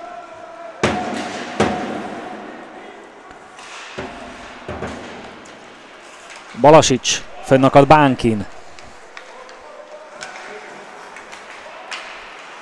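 Hockey sticks smack a puck with sharp cracks in an echoing arena.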